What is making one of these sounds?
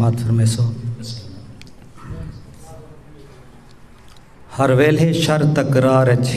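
A man speaks into a microphone close by, in a calm, earnest voice.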